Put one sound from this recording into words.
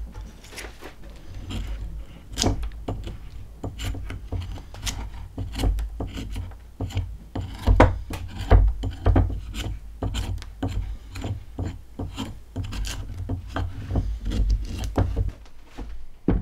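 An axe chops and shaves at wood in quick repeated strokes.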